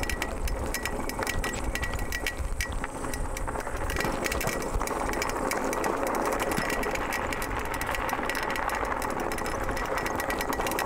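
Wind rumbles past outdoors.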